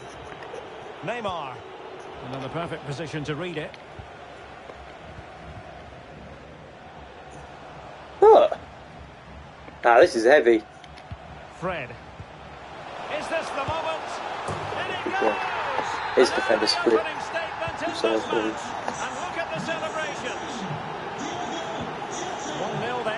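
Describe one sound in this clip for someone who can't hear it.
A young man speaks with excitement close to a microphone, at times shouting.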